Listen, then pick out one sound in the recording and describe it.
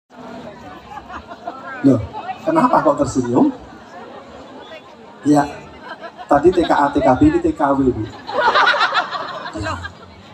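A man speaks with animation through a loudspeaker outdoors.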